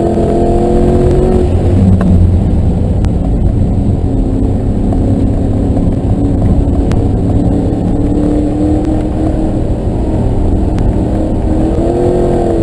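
A car engine roars loudly from inside the cabin, dropping in pitch as it slows and climbing again as it speeds up.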